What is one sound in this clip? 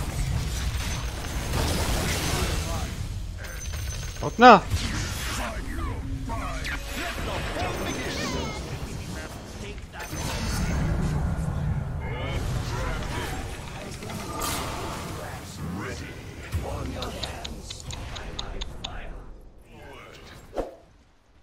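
Magic blasts and explosions crackle in a game battle.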